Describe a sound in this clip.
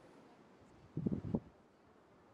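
An elephant seal snorts and grunts low and close.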